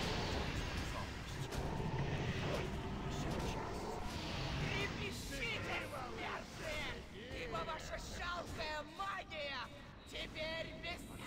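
Spells crackle and whoosh in a game battle.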